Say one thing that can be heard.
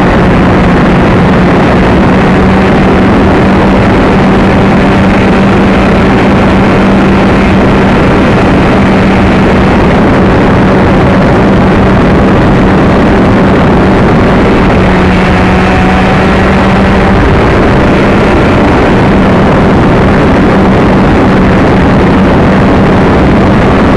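Wind rushes loudly past, roaring and buffeting.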